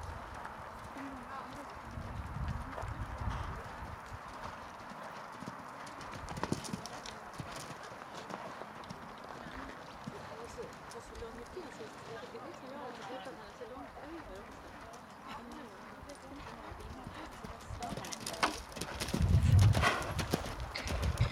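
A horse canters with soft hoofbeats on sand.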